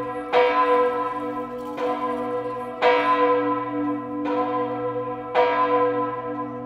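Church bells ring loudly from a tower, each strike ringing on and slowly fading.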